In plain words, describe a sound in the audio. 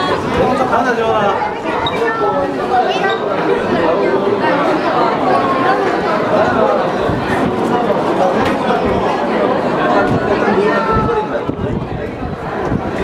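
Young women chat and laugh nearby.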